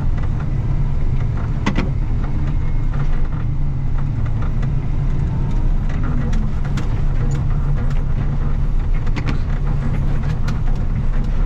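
A plough blade scrapes and crunches through snow on the road.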